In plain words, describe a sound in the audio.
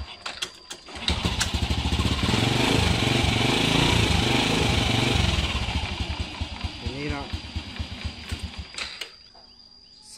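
A small motorcycle engine runs close by, rising to a loud rev and then settling back.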